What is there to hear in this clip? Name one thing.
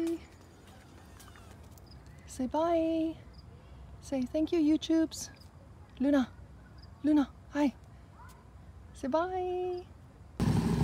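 A small dog whines and yelps in short bursts close by.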